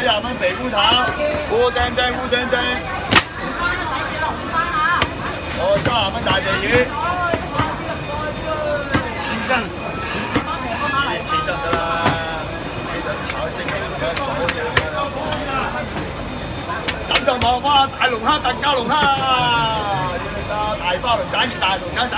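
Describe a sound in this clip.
A cleaver chops through a shell on a wooden block with sharp knocks.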